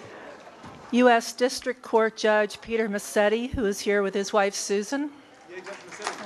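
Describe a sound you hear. A middle-aged woman speaks through a microphone.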